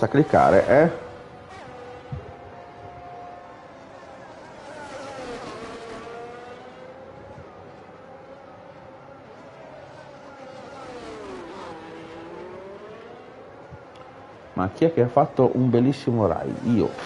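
A racing car engine whines, rising and falling in pitch.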